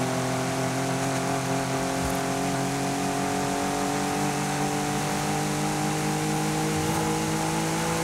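A car engine hums steadily and slowly rises in pitch as it speeds up.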